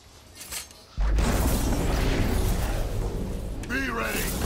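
A magical blast bursts with a loud rushing roar.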